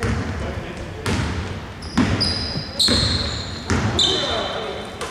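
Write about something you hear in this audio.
A basketball bounces on a wooden floor in a large echoing hall.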